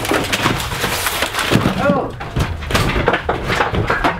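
Broken wood clatters to the floor.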